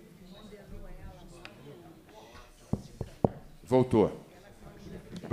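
Several adults talk over one another in a room.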